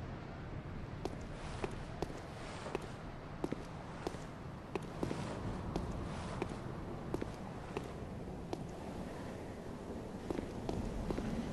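Footsteps tread on stone.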